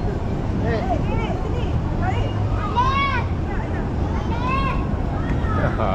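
Children call out with high voices.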